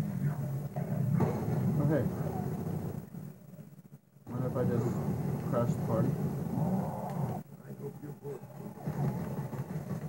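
Gunfire rattles through a television speaker.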